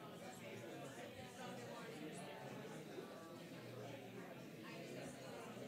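A man talks quietly close by.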